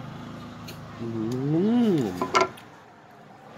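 A man makes loud drawn-out sounds of enjoyment while eating.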